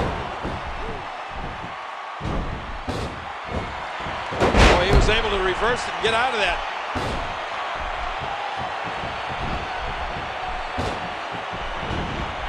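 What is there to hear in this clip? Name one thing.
A large crowd cheers and murmurs steadily in an echoing arena.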